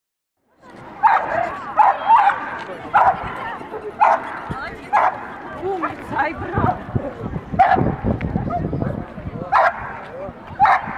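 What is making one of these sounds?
Dogs bark sharply again and again outdoors.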